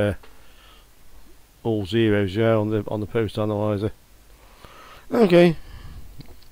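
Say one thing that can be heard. A middle-aged man talks calmly into a headset microphone.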